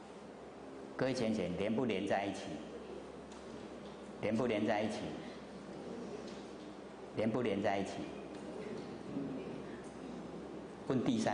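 An elderly man speaks with animation into a microphone, with pauses between phrases.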